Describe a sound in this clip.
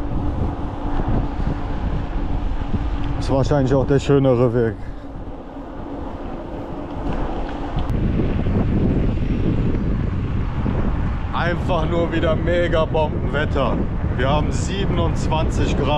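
Wind rushes steadily across the microphone outdoors.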